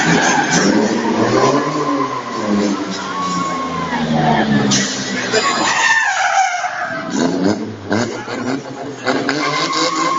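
A race car engine roars and revs loudly in a large echoing arena.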